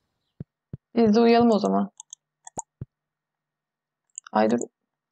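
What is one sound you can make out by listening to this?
A young woman speaks calmly and close into a microphone.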